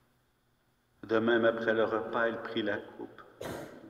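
An older man chants into a microphone, echoing in a large hall.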